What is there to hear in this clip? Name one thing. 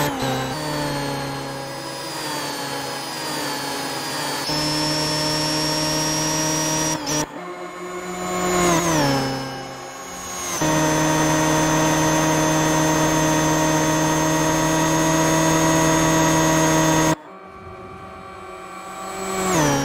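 An electric race car's motor whines loudly, rising and falling in pitch as it speeds past.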